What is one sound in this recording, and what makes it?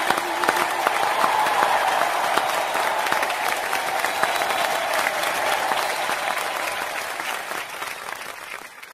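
A large crowd cheers loudly.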